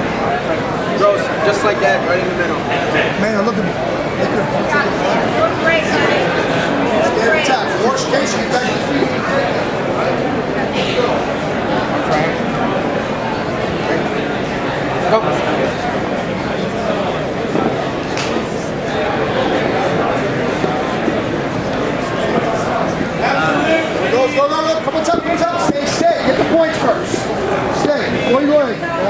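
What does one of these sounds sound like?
A crowd of spectators talks and shouts throughout.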